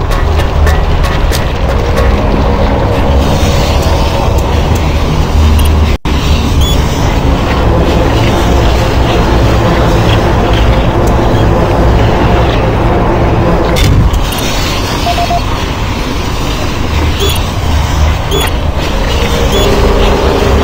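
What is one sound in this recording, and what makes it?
A machine lift rumbles and hums steadily as it moves.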